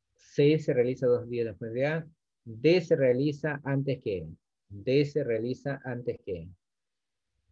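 A man speaks calmly into a microphone, as on an online call.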